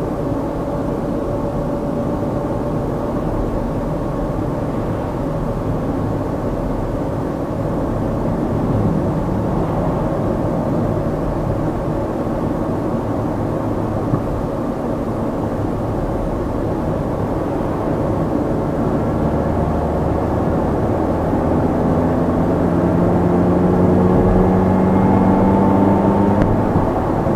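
Tyres roll and rumble on an asphalt road.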